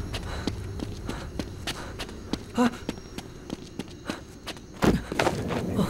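Footsteps tread on the ground.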